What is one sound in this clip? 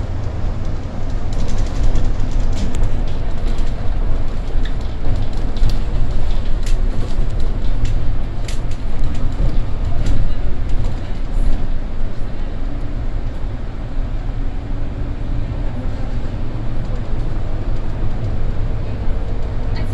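A bus engine rumbles steadily as the bus drives along a street.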